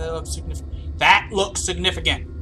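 A young man shouts in fright.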